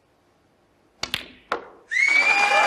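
Snooker balls click together as a cue strikes.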